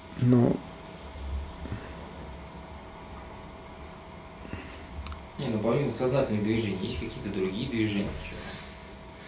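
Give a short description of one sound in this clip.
An elderly man speaks calmly into a nearby microphone, with pauses.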